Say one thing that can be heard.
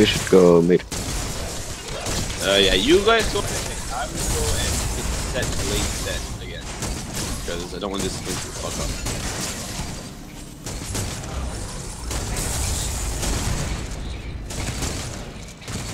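Energy weapons fire in rapid bursts, with blasts and crackling impacts.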